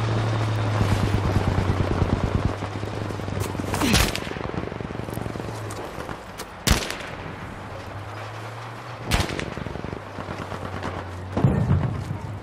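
A truck engine runs.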